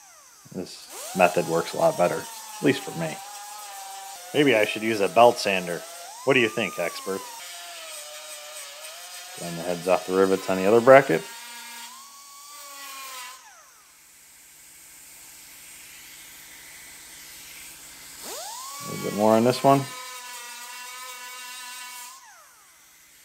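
An air-powered grinder whines as it grinds metal.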